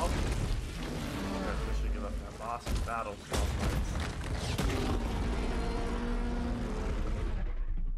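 A large beast roars.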